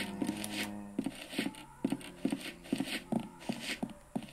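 Footsteps thud at a steady walking pace from a small phone speaker.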